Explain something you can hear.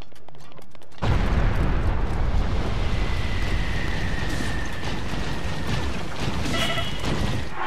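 A loud fiery blast roars and rumbles.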